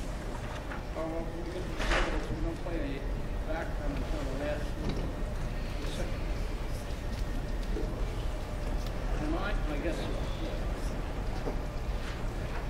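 A saxophone section plays a jazz tune together in a large hall.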